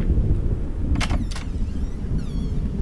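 A wooden door clicks and swings open.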